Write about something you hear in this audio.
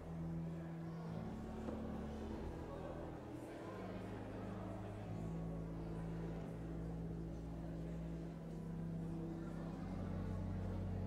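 A crowd of adults murmurs and chats quietly in a large echoing hall.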